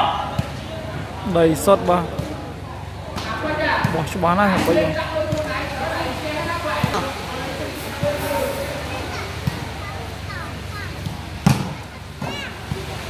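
A crowd of spectators chatters and calls out, echoing under a large roof.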